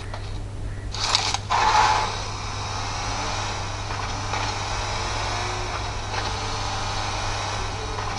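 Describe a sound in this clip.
A video game's vehicle engine drones through a phone's small speaker.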